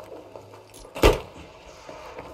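A pistol shot bangs sharply close by.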